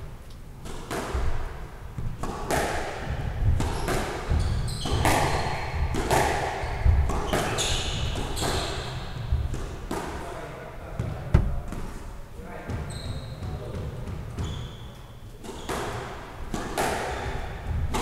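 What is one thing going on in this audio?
A squash ball smacks against the front wall and echoes around the court.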